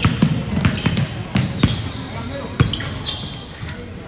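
A basketball bounces with loud thuds in a large echoing hall.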